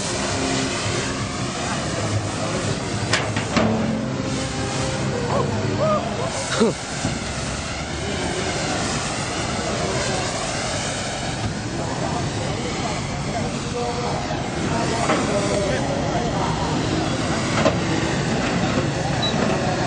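A crowd of men chatters outdoors nearby.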